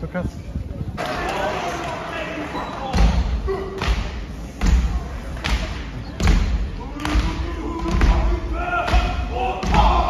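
A group of men chants loudly in unison in an echoing hall.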